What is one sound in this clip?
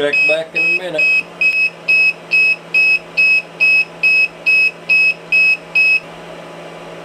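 A battery charger beeps rapidly and repeatedly.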